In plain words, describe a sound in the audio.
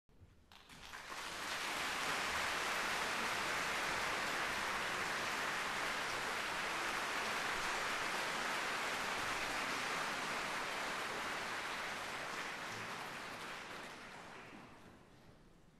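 An audience applauds in a large echoing hall, swelling then slowly fading.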